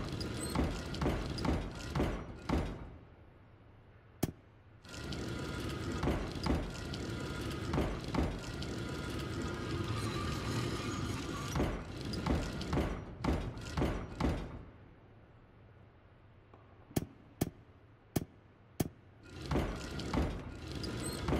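Stained glass segments click and grind as they turn into place.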